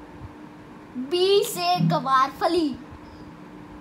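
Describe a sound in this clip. A young boy talks excitedly and laughs close by.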